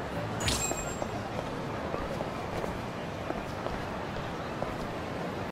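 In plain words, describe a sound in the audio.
Footsteps tap on pavement at a walking pace.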